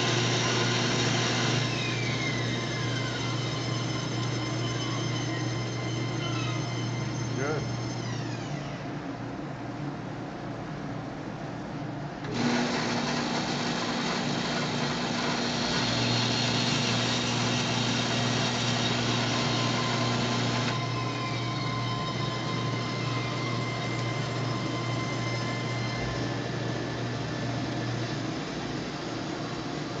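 A scroll saw motor hums and buzzes steadily.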